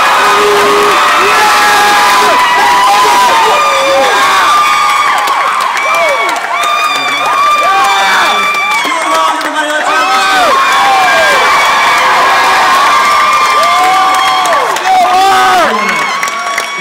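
A crowd of young people screams and cheers loudly in a large hall.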